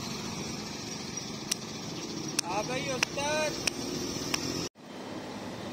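A bus engine idles and rumbles nearby.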